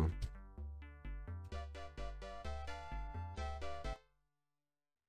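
Electronic game music plays with beeping tones.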